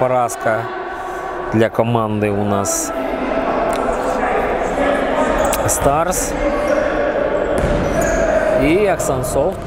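A ball thuds off players' feet.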